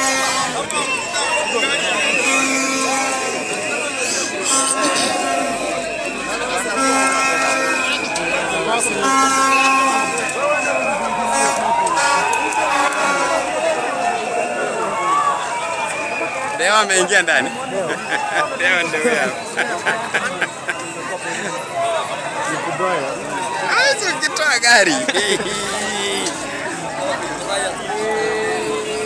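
A crowd of people shouts and chatters outdoors.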